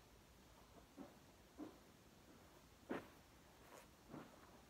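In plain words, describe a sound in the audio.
Soft footsteps pad across carpet.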